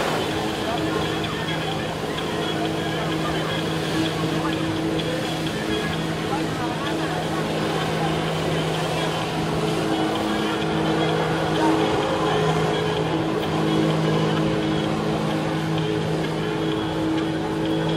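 A personal watercraft engine drones at high revs.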